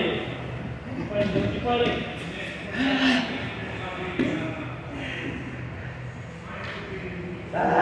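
Bodies thump and scuffle on a padded mat.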